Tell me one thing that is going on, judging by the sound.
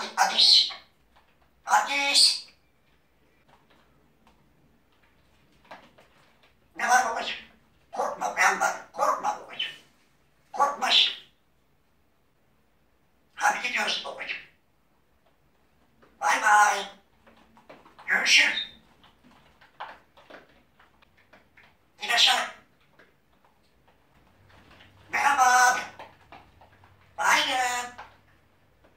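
A parrot whistles and chatters in loud bursts close by.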